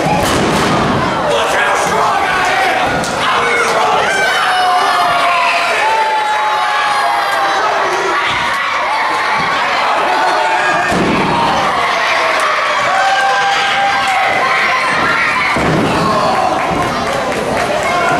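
Bodies thud onto a wrestling ring mat.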